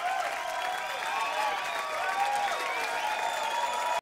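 Audience members clap their hands.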